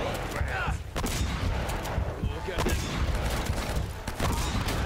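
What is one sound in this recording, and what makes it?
Gunshots ring out one at a time.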